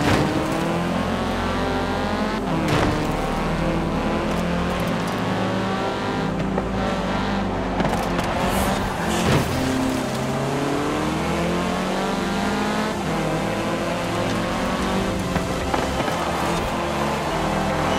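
Tyres screech through tight corners.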